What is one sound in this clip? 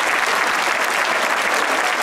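Men clap their hands nearby.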